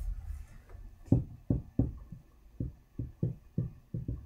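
Game pieces tap and click on a table.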